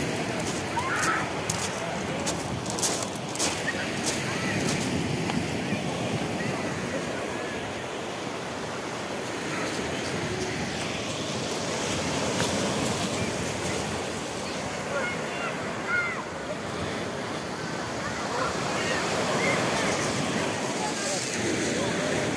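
A crowd of men, women and children chatters and calls out all around, outdoors.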